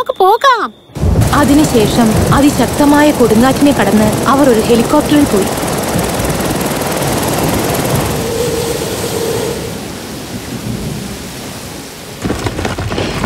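Heavy rain pours down in a storm.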